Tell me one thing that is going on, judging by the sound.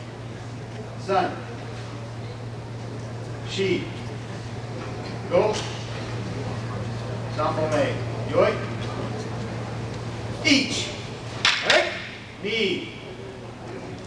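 Children shout sharply in bursts in a large room.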